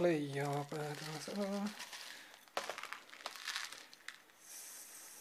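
Small clay pebbles pour and rattle into a pot.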